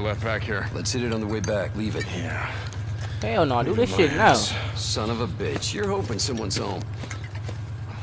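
A man speaks gruffly and close by.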